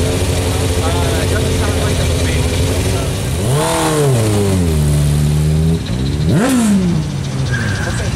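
A loud engine idles roughly nearby and revs up with a rising roar.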